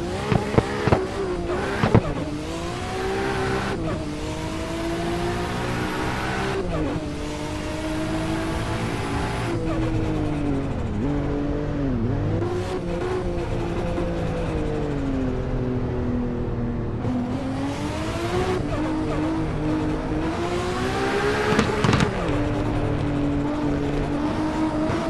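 A car engine roars steadily, its pitch climbing and dropping as the gears change.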